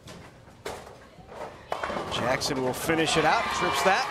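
A bowling ball knocks down pins with a clatter.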